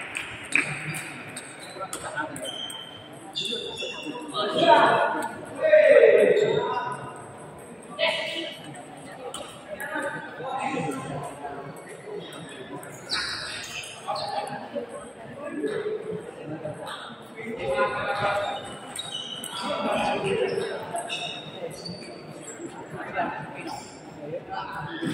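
A crowd of spectators chatters in a large hall.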